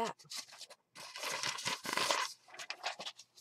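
A sheet of paper rustles as it is handled.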